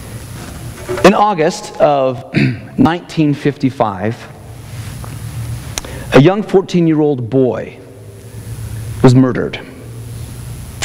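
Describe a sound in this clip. A man speaks calmly through a microphone, in bursts with pauses.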